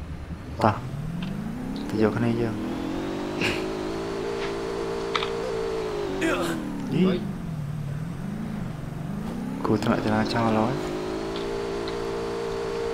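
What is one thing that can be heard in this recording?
A vehicle engine roars, revving up and down.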